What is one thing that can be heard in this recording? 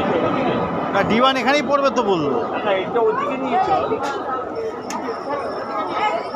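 A woman speaks loudly close by.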